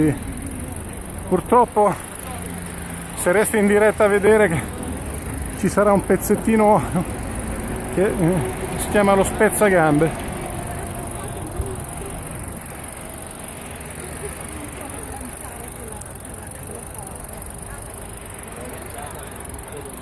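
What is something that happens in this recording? Footsteps scuff on a road outdoors.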